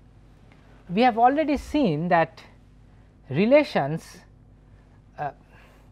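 A man speaks calmly and clearly into a close microphone, in short phrases.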